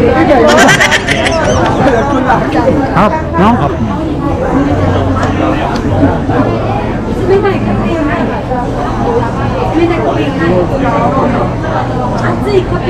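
A crowd chatters all around.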